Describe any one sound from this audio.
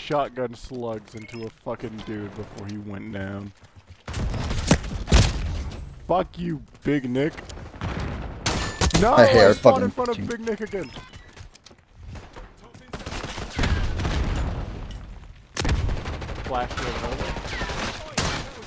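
Rapid gunfire bursts out in loud, sharp cracks.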